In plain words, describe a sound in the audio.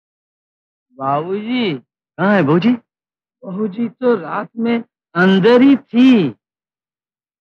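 A man speaks with strong emotion, close by, in short bursts.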